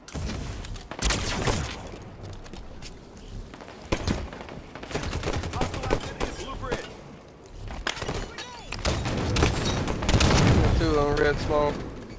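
Gunfire and explosions burst in a video game.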